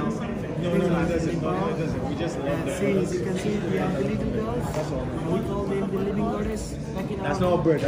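A young man talks calmly to people close by.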